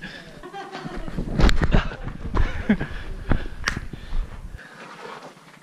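Snow scrapes and crunches as a person slides down a slope.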